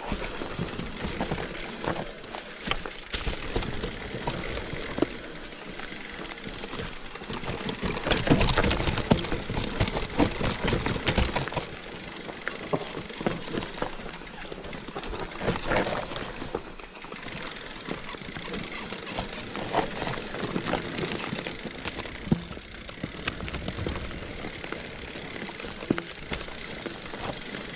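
Bicycle tyres crunch and roll over dry leaves and dirt.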